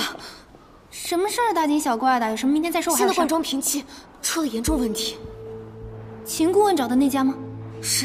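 A second young woman answers in a serious tone.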